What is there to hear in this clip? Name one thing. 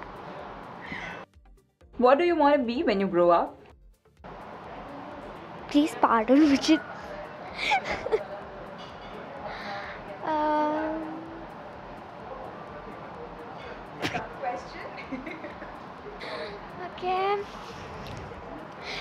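A young girl speaks animatedly into a nearby microphone.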